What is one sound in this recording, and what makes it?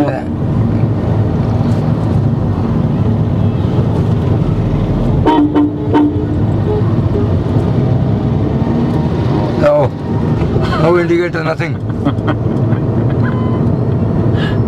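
A car engine hums steadily with road noise inside the car.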